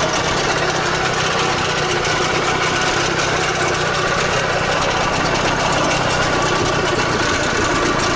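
An engine idles with a steady, rough rumble close by.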